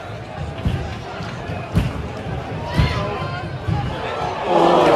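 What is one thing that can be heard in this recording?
Handclaps ring out sharply from the crowd.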